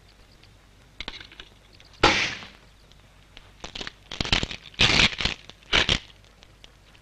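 A metal padlock and chain clank and rattle sharply.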